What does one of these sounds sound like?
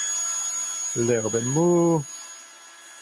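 A cordless drill whirs briefly, speeding up and then running steadily.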